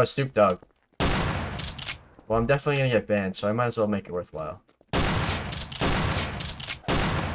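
A shotgun fires loudly.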